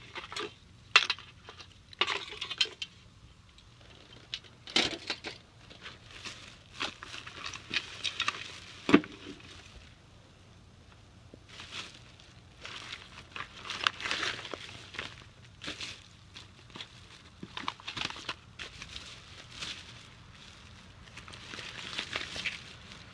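Packaged items clatter and knock together.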